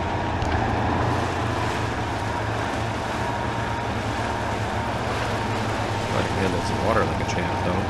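Water splashes around a truck's wheels.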